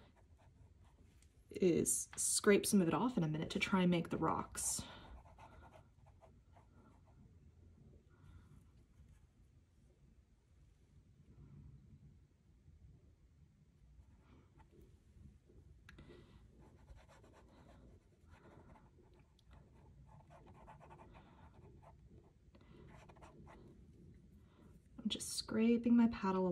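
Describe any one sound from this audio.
A brush softly strokes across paper.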